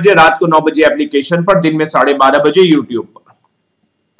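A young man speaks quickly and with animation into a close microphone.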